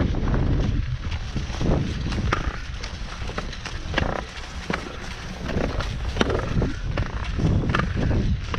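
Ski poles crunch into packed snow.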